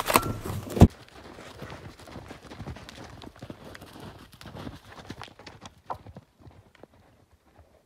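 A horse gallops, hooves thudding on snow.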